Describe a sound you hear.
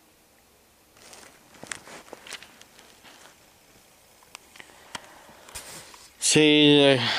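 Book pages rustle and knock as they are handled.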